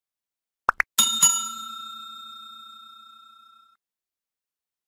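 A small bell rings once and slowly fades.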